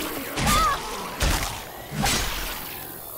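A sword slashes through a zombie.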